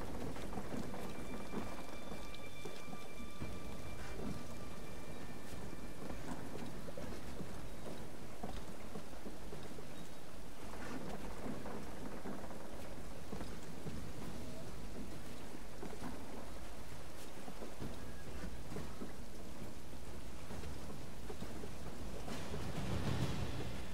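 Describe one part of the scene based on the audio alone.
Hands grip and scrape against wooden planks during a climb.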